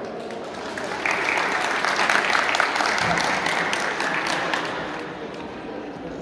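A crowd applauds.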